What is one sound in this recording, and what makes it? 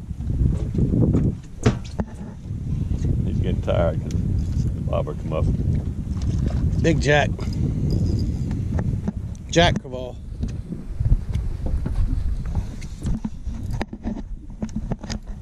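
Wind blows and rumbles outdoors over open water.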